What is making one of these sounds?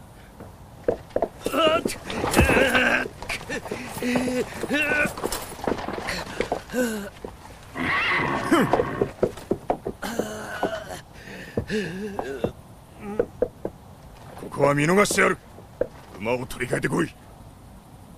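A middle-aged man speaks with strong emotion.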